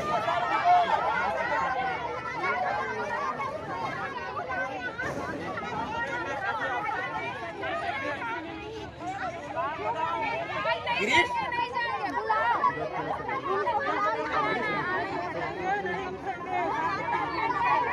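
A large crowd of women talks and chants loudly outdoors.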